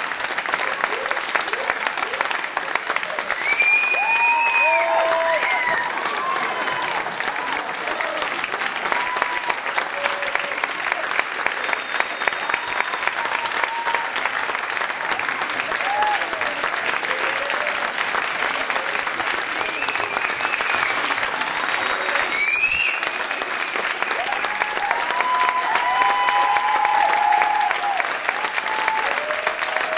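A large audience applauds steadily throughout.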